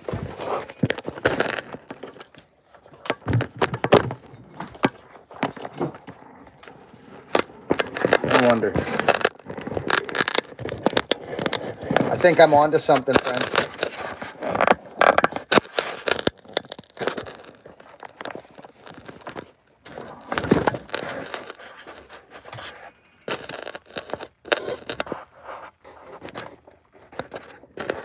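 Hands bump and rustle against the microphone.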